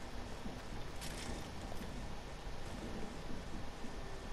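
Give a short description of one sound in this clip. Wooden walls snap into place with a clatter.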